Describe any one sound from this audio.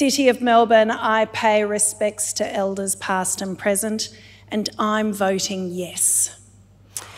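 A woman speaks with feeling into a microphone in a large hall.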